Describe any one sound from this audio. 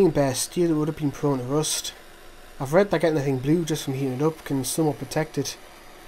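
A gas torch hisses steadily.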